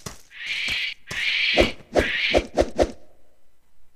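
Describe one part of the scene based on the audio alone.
Blades clash and strike in quick blows.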